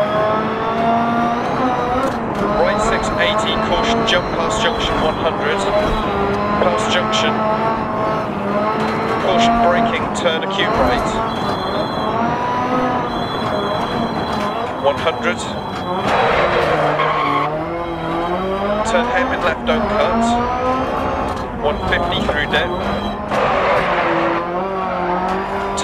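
A rally car engine revs hard, rising and falling in pitch as gears shift.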